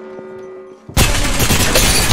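Gunfire bursts out loudly and rapidly.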